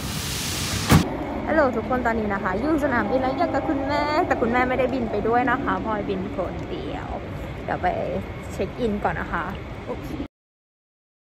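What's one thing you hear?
A young woman talks with animation, close up.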